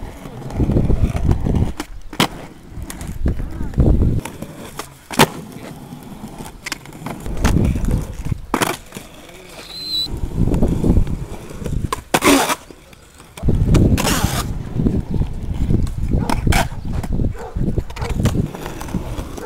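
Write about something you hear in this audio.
Skateboard wheels roll and rumble on rough concrete.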